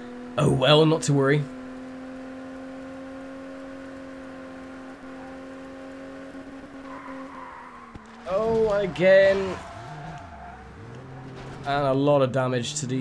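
A car engine hums steadily, now and then revving up and down.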